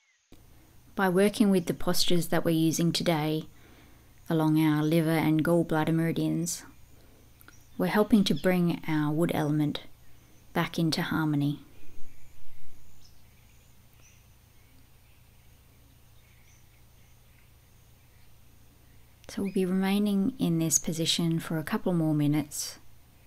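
A woman speaks calmly and slowly, close to a microphone.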